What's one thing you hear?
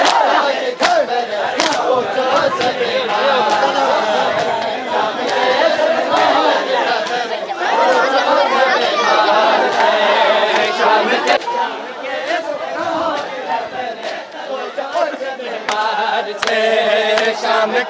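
Men slap their bare chests in a steady rhythm.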